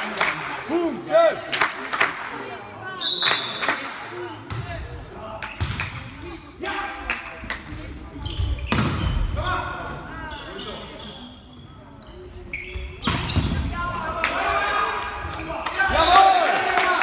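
Young men shout and call out during play.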